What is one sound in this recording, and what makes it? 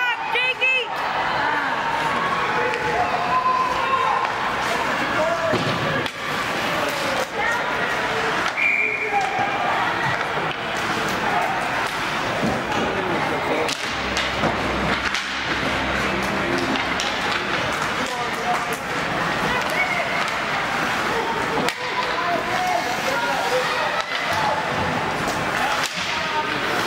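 Spectators chatter and call out in an echoing arena.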